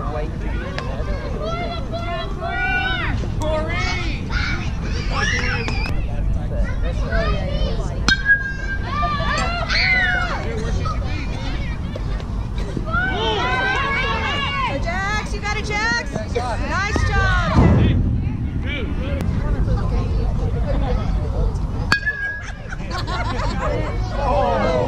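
A crowd of adults and children shouts and cheers nearby, outdoors.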